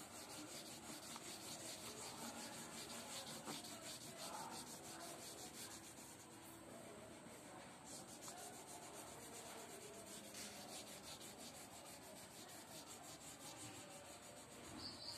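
Fingers brush softly against a sheet of paper.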